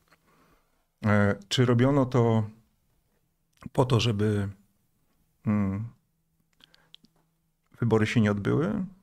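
A middle-aged man speaks calmly and close into a microphone, in short bursts with pauses.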